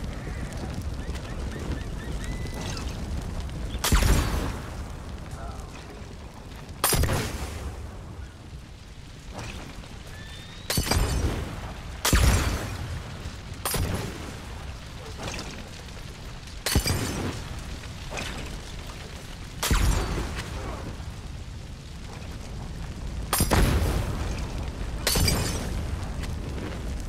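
Flames crackle and roar on the ground.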